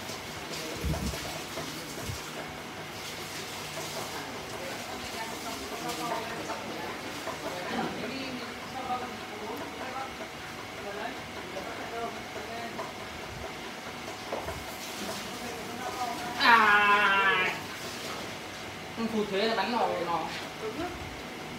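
Wet clay squelches softly under hands.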